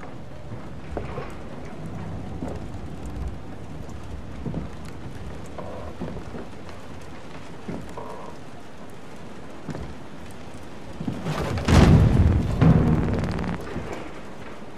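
Footsteps creak slowly on wooden floorboards.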